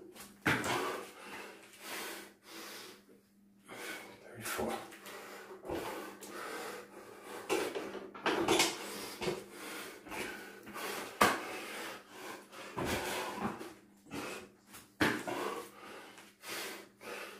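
A man breathes heavily close by.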